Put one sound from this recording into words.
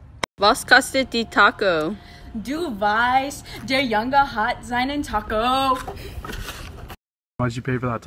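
A young woman talks excitedly, close by.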